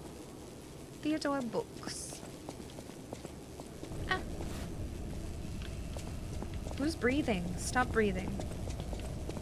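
A young woman speaks casually into a close microphone, in short bursts.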